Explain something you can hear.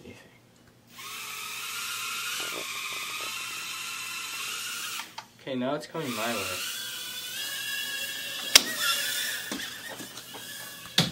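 A small toy drone's propellers whir with a high buzz.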